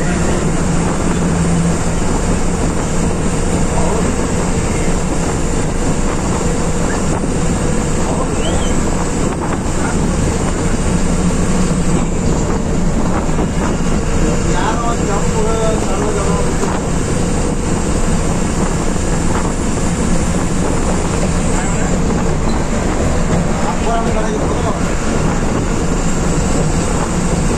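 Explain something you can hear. A vehicle's engine rumbles steadily from inside the cab as it drives along a highway.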